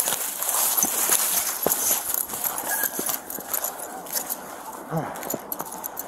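Clothing rustles and brushes right up close.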